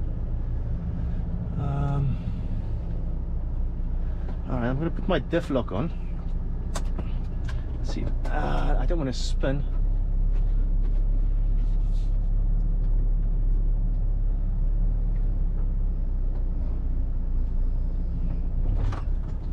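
A truck's tyres crunch over rough gravel.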